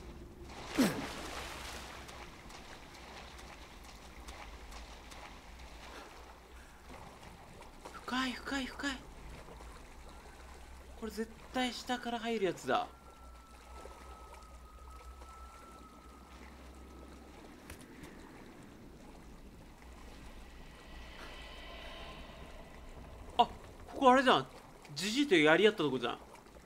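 Water sloshes and splashes as someone wades slowly through it.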